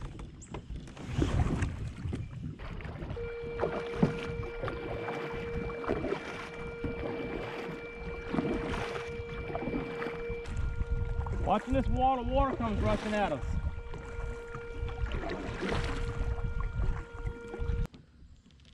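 A kayak paddle splashes through calm water in steady strokes.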